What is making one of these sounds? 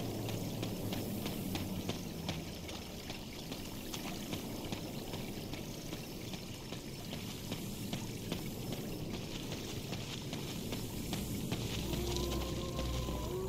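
Footsteps crunch steadily along a dirt path.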